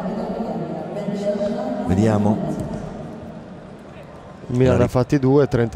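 A large crowd murmurs in a stadium.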